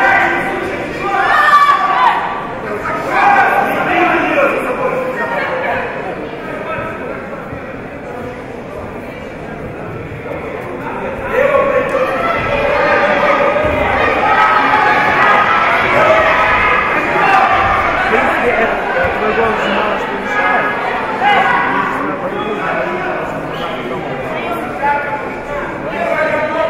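A large crowd cheers and shouts in a large echoing hall.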